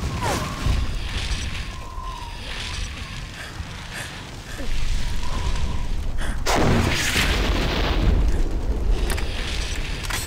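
Game weapons fire and energy blasts burst with loud whooshing bangs.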